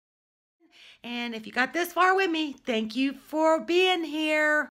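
A middle-aged woman talks with animation close by.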